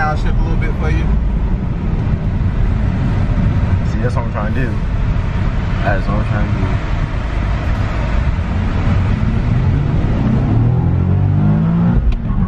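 A car engine hums and rumbles steadily from inside the car.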